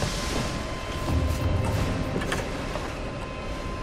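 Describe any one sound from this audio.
A heavy wooden chest lid creaks open.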